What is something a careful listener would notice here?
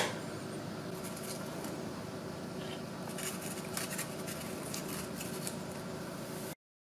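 Cardboard scrapes and rustles against a plate.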